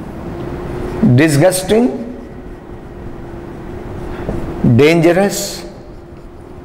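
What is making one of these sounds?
A middle-aged man speaks in short phrases, close to a microphone.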